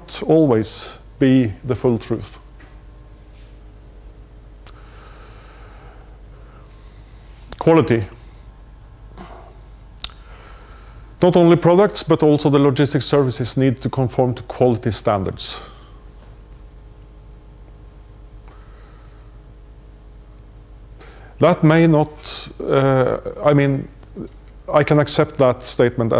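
A man lectures in bursts with pauses, heard through a microphone in a large room.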